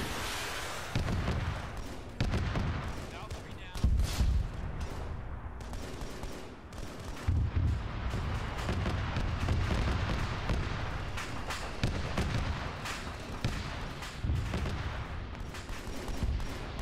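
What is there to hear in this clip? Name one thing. Explosions boom and rumble again and again.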